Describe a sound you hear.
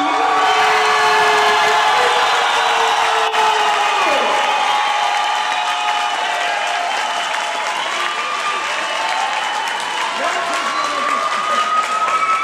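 A large crowd cheers and shouts loudly in an echoing hall.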